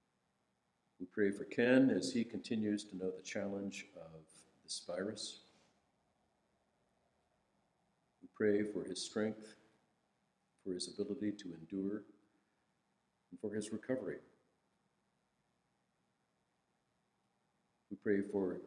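A middle-aged man reads aloud calmly into a microphone, with pauses.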